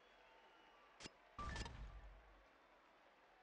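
Punches and body slams thud in a wrestling video game.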